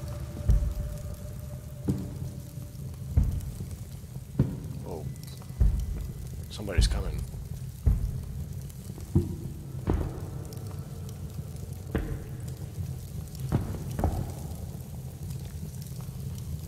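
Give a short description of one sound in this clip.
A torch flame crackles and roars softly.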